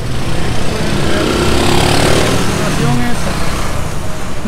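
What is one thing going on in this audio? Several motorcycles rumble past close by.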